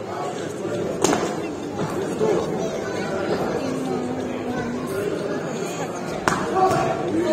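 Gloved punches thud sharply now and then.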